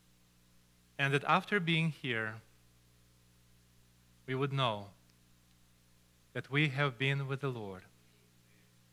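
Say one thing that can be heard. A middle-aged man speaks slowly and deliberately through a microphone, with pauses between phrases.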